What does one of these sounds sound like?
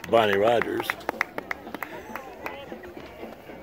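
Gloved hands clap close by.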